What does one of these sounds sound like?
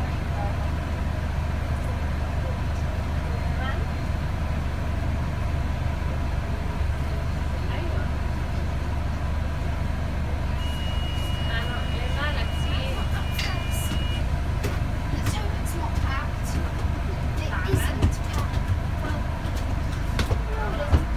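A vehicle's engine rumbles steadily while it drives along a road.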